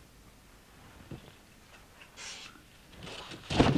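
Paper rustles as a man leafs through sheets.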